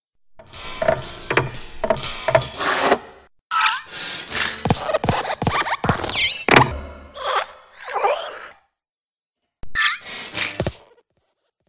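A small metal lamp hops and lands with dull thuds.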